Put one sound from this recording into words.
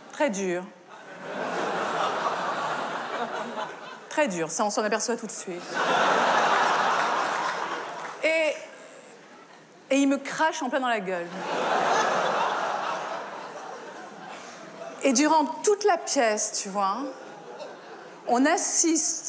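A middle-aged woman speaks animatedly into a close microphone.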